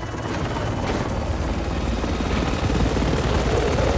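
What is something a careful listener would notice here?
A helicopter's rotor thumps loudly overhead.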